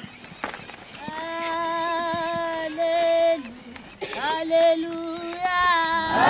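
A crowd of women sings loudly with long held notes.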